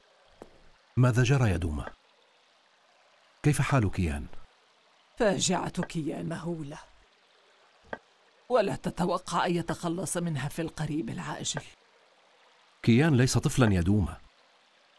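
A man speaks in a deep, solemn voice.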